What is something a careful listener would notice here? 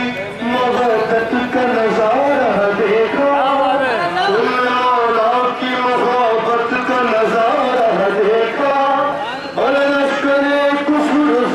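An older man sings along close by.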